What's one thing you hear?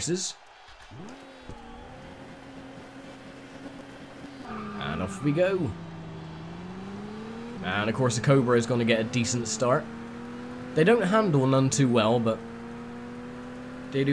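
A racing car engine hums and revs up through the gears.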